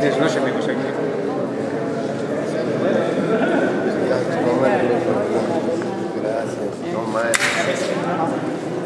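A crowd of men and women chatter all around in a busy, echoing room.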